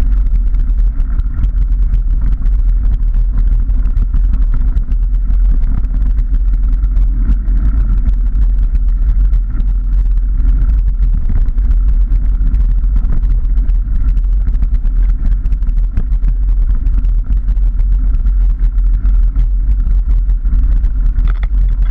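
A motorbike engine drones steadily.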